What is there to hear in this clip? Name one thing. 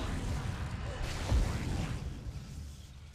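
A crackling energy blast bursts with a deep rumble, then fades.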